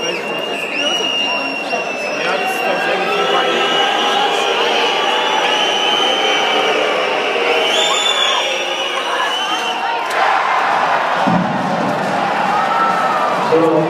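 A large crowd chants and sings loudly in an echoing arena.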